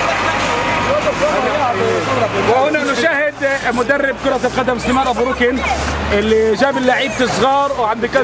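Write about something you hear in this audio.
A man sweeps the road with a broom, bristles scraping the asphalt.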